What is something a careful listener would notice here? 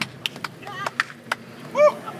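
Two hands slap together in a sharp high five.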